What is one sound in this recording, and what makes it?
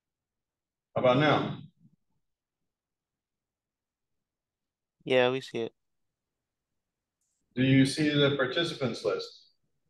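An older man speaks calmly in short bursts through an online call.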